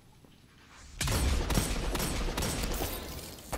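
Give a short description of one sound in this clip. A handgun fires several sharp shots.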